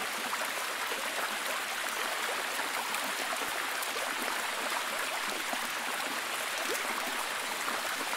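A waterfall rushes and splashes steadily over rocks.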